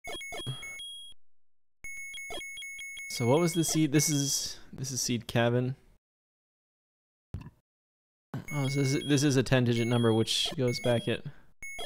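Short electronic beeps chime in quick succession.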